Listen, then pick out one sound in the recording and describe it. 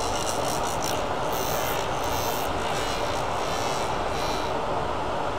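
A chisel scrapes and shaves against turning plastic.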